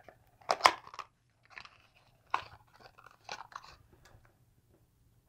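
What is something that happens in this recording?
Small items click and rustle as hands handle them.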